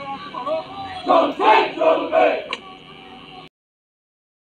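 A crowd of young men chants slogans in loud rhythmic shouts outdoors.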